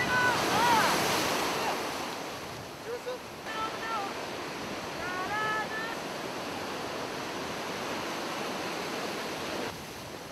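Ocean waves crash and roll onto the shore.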